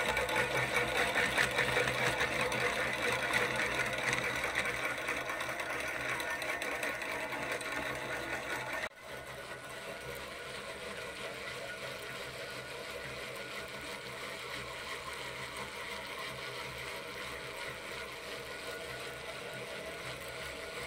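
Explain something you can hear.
A fishing reel whirs and ticks steadily as its handle is cranked quickly.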